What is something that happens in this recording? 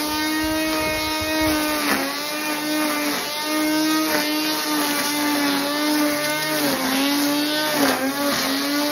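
An electric grass trimmer whines steadily, dipping briefly in pitch as it cuts into grass.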